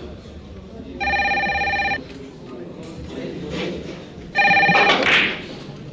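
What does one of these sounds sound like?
A telephone rings loudly twice.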